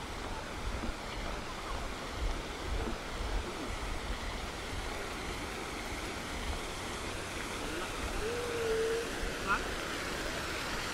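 A fountain splashes steadily outdoors.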